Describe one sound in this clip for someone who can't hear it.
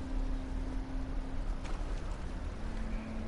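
Water sloshes around a person wading.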